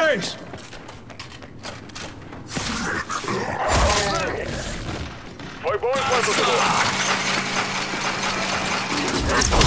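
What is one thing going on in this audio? Heavy armoured footsteps thud on hard ground.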